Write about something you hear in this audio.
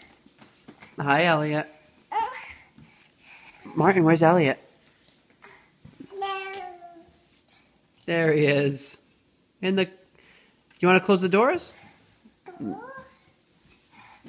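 A toddler squeals and babbles excitedly close by.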